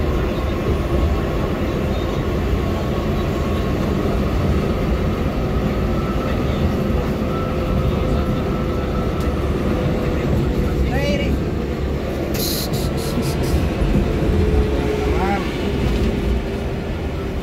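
A vehicle engine roars steadily.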